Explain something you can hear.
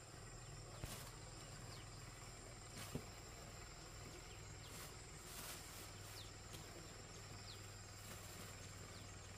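A tarp crinkles and rustles as it is smoothed out by hand.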